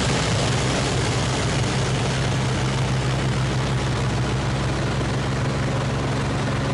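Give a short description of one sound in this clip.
A propeller engine drones loudly and steadily.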